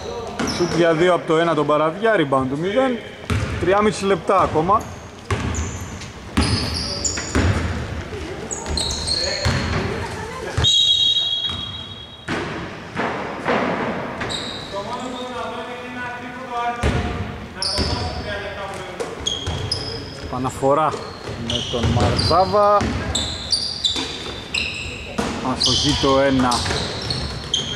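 Men call out loudly in a large echoing hall.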